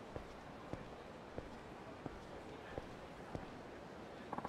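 Footsteps tap steadily on pavement.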